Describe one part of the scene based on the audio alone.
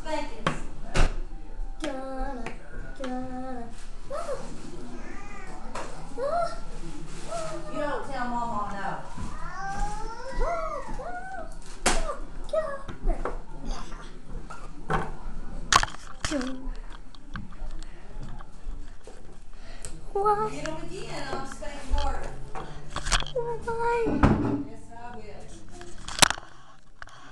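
Toys knock and clatter against a table.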